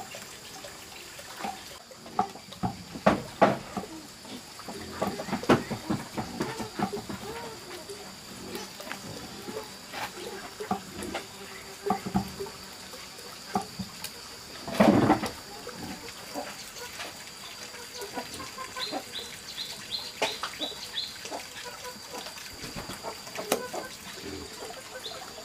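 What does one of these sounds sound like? A knife chops on a wooden chopping block.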